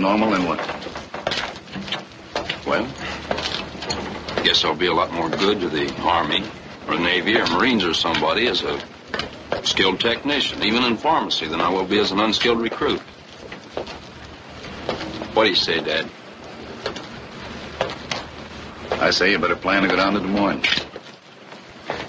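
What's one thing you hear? Men talk in low, calm voices, heard through an old film soundtrack.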